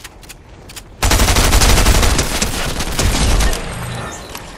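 A rapid-fire gun shoots in a long, loud burst.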